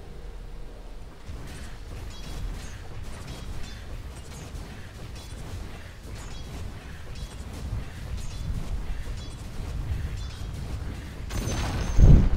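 Weapons clash and strike repeatedly in a fantasy battle.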